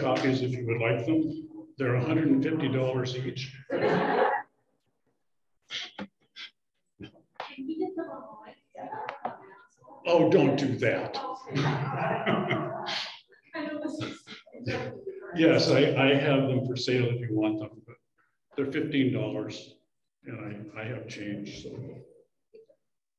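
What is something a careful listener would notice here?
An elderly man speaks with animation into a microphone, heard through an online call.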